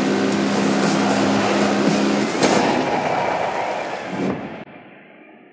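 An off-road buggy engine roars and revs loudly.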